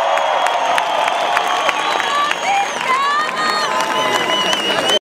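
A large crowd cheers and screams loudly outdoors.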